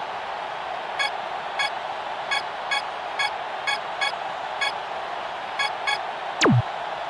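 Short electronic beeps sound one after another.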